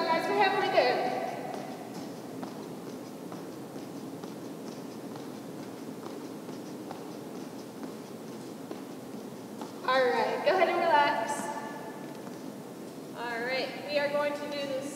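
A teenage girl speaks brightly in a large echoing hall.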